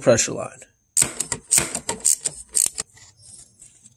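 A ratchet wrench clicks as it turns a metal fitting.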